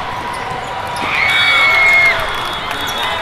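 A crowd cheers loudly after a rally.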